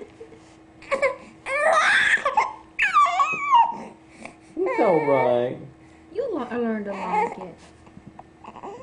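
A baby squeals and whines close by.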